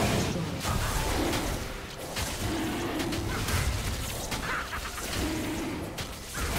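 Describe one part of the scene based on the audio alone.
Video game combat sound effects clash and burst.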